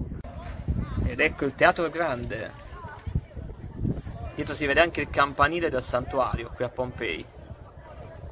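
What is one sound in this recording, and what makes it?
People talk in a crowd nearby.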